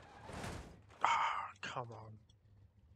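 Tyres squeal as a car slides sideways.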